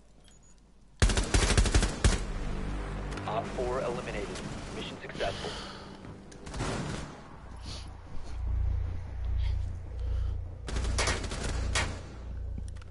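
Rapid gunshots fire in short, loud bursts.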